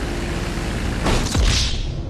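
Water splashes and sprays as a seaplane touches down.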